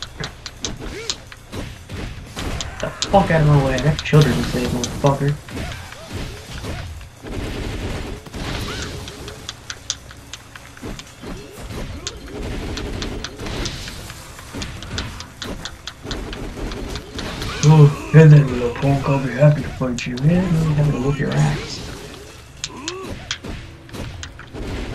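Punches and kicks land with sharp, rapid thuds.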